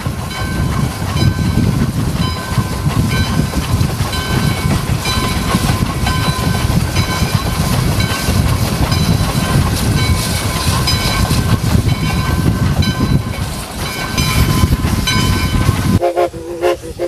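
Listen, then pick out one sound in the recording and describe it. A steam locomotive hisses and rumbles close by.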